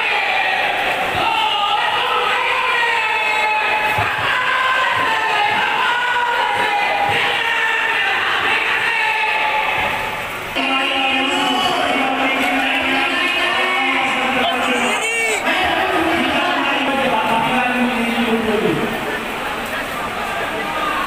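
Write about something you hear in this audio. A large crowd of men shouts and chants outdoors.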